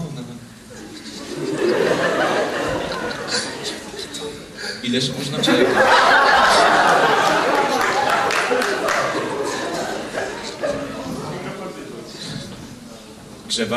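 An audience laughs and claps.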